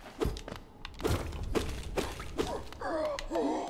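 A sword slashes and strikes with sharp hits.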